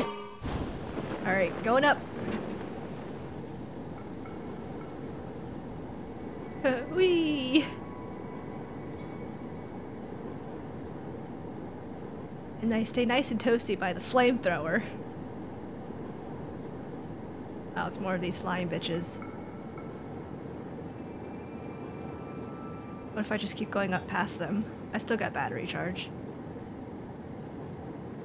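A burner flame roars steadily.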